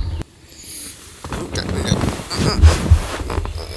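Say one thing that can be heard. A blanket rustles as it is pulled and shifted.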